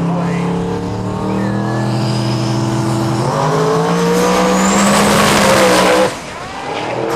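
A race car engine roars loudly close by.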